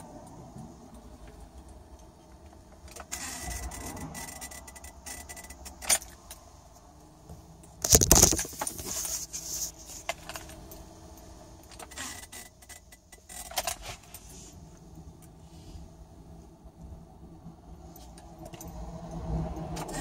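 A car engine idles with a low steady hum.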